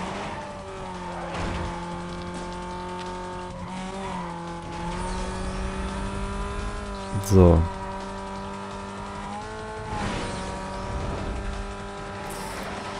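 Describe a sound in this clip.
A race car engine roars steadily at high speed, shifting gears now and then.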